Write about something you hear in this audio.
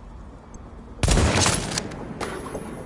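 A rifle fires a loud shot.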